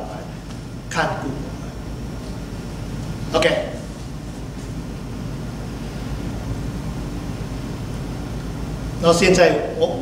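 An elderly man speaks calmly through a microphone in a reverberant hall.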